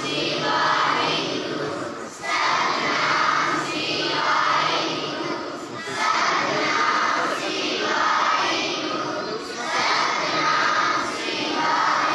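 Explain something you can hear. A large group of girls chants together in unison, in a loud, echoing hall.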